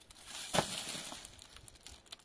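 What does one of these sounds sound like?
A trowel scrapes and slaps plaster onto a block wall.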